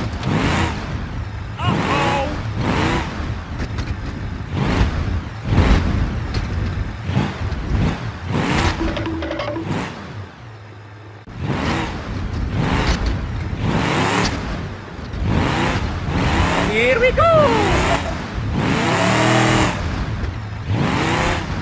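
A buggy engine revs and growls as it climbs over logs.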